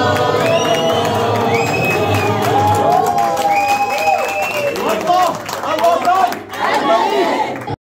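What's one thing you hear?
A crowd of men and women chant and sing loudly together, heard close by.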